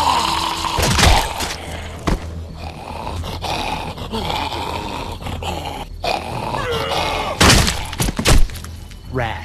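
A heavy blow strikes with a loud thud.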